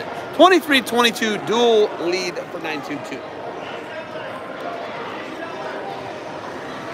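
A crowd of spectators murmurs in a large echoing hall.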